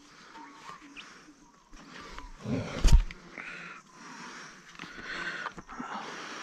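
Dry grass and brush rustle and crackle underfoot.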